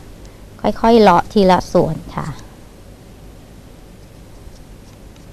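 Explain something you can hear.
A small knife cuts softly into firm fruit.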